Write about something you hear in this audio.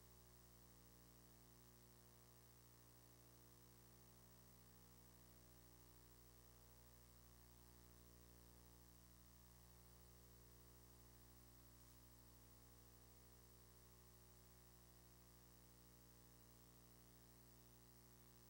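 A crowd of people murmurs and chatters quietly in the distance.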